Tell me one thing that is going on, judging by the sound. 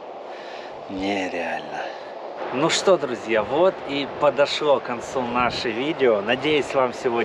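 A man talks calmly and closely to the listener, outdoors.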